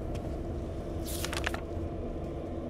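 Pages of a book rustle open.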